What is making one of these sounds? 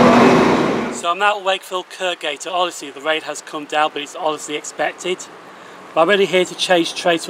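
A man talks animatedly close by.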